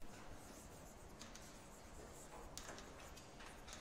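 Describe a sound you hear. Chalk taps and scratches on a chalkboard.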